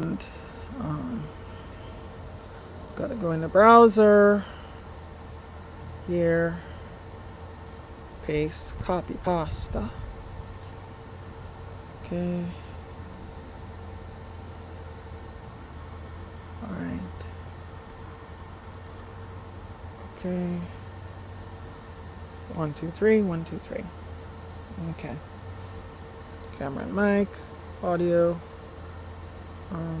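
A woman speaks calmly and close to a clip-on microphone, in short bursts with pauses.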